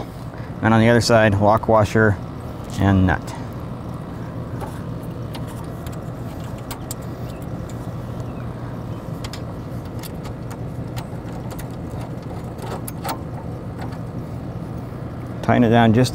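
Small metal parts click and clink softly.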